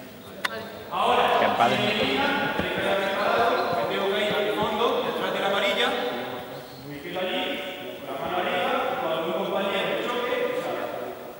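A man speaks loudly to a group in a large echoing hall.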